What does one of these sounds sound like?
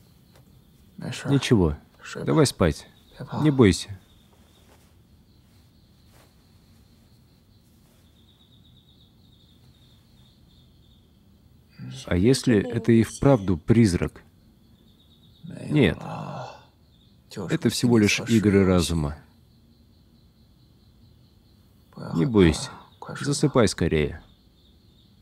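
A man speaks softly and reassuringly up close.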